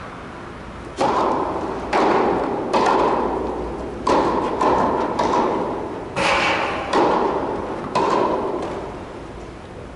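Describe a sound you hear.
A tennis racket strikes a ball with sharp pops that echo through a large hall.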